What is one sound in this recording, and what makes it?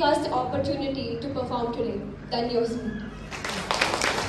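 A woman speaks calmly into a microphone through a loudspeaker in an echoing hall.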